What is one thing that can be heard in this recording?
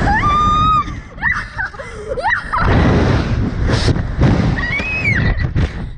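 A young boy shouts and laughs with excitement.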